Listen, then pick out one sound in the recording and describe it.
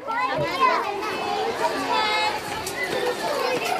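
Young children chatter and call out nearby.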